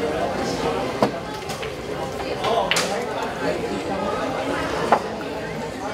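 Pool balls click together.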